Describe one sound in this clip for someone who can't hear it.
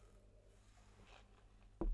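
A man sips from a glass.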